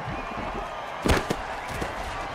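Players crash together with a heavy thud.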